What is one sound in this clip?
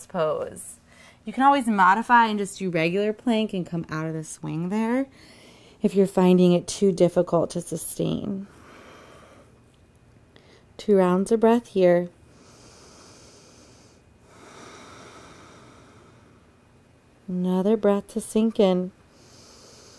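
A young woman speaks calmly and softly, close to a microphone, with long pauses.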